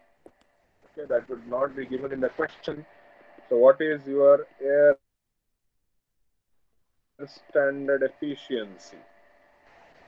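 A young man explains calmly through an online call.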